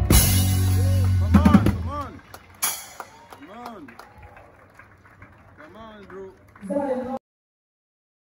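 A live band plays music.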